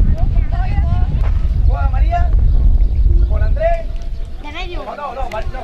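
Children talk and call out excitedly nearby.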